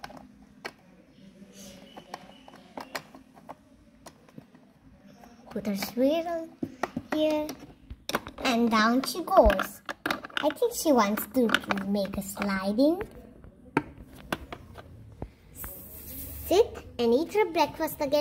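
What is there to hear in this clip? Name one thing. Small plastic toys tap and click against each other.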